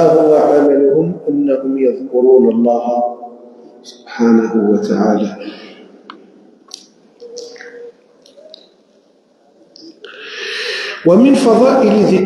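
An elderly man reads aloud slowly through a microphone.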